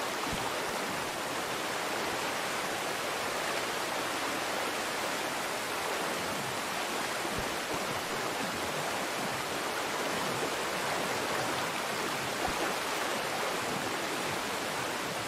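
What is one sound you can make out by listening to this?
Rushing river water splashes and churns steadily.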